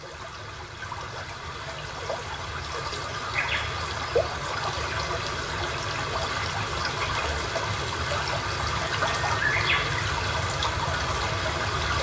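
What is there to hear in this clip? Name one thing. Water flows steadily over rocks, played back through loudspeakers.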